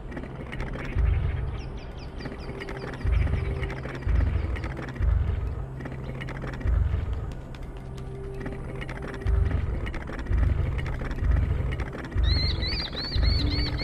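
A heavy stone dial grinds as it turns, in short bursts.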